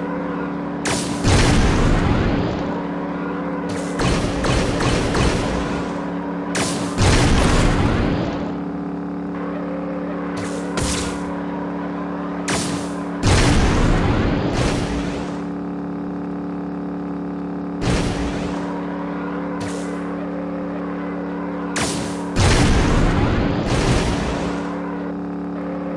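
Boost bursts whoosh loudly now and then.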